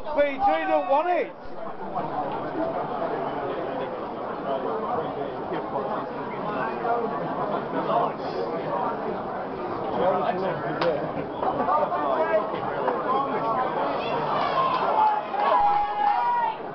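A crowd of men and women chatter in a large, echoing hall.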